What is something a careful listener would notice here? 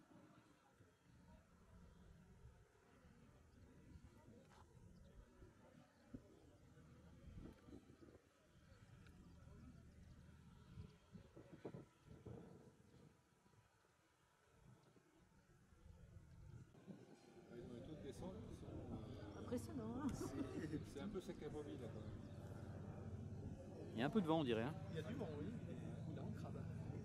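A small propeller plane's engine drones steadily high overhead.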